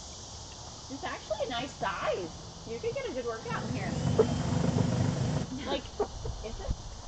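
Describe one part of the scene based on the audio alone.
Young women talk and laugh close by, outdoors.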